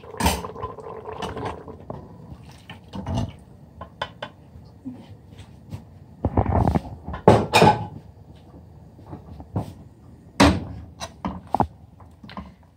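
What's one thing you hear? A metal pot clanks on a stove's metal grate.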